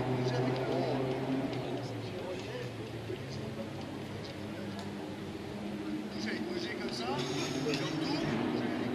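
A crowd of spectators chatters in the distance outdoors.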